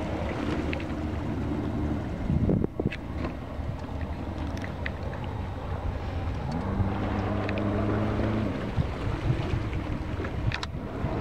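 Water swishes gently around a small boat.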